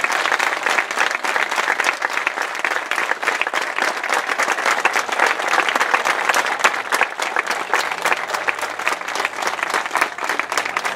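A crowd applauds outdoors with dense, steady clapping.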